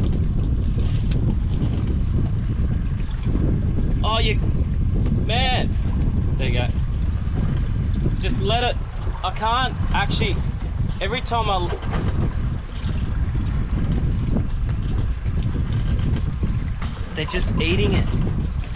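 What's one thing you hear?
Wind rushes steadily over open water.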